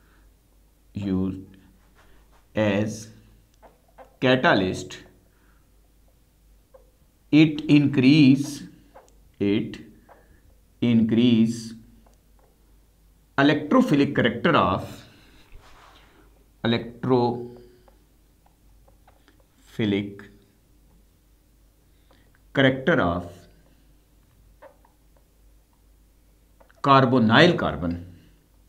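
A middle-aged man speaks calmly in short phrases, close by, as if teaching.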